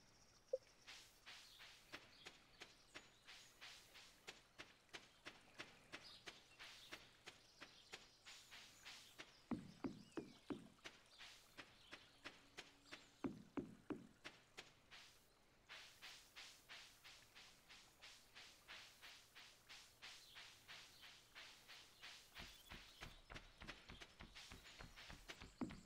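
Quick footsteps patter steadily along a path.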